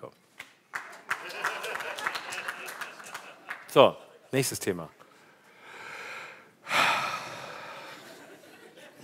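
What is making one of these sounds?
An audience laughs in a large hall.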